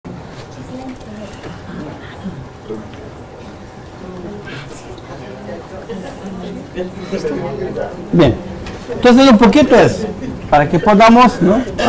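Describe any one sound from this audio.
A man talks calmly to an audience, his voice growing louder and closer to a microphone.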